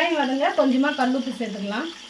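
Salt pours into a pot.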